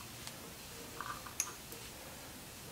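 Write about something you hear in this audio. A screwdriver clicks softly against a metal fitting.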